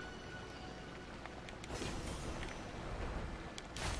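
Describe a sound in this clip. Water pours steadily from a waterfall.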